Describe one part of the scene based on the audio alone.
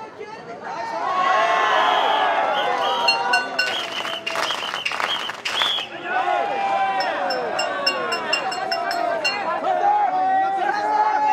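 A large crowd of men and women chant and shout loudly outdoors.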